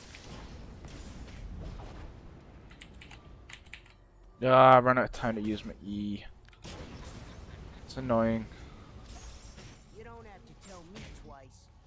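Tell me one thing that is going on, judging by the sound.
Magic blasts burst and crackle in a game fight.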